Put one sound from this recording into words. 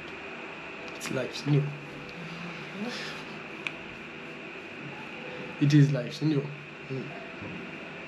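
A man speaks softly and warmly, close by.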